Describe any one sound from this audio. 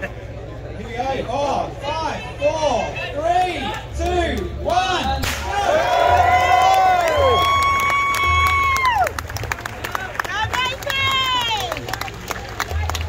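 A crowd of runners cheers and whoops loudly.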